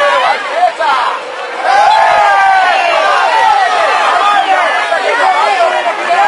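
A crowd of fans chants and shouts loudly outdoors.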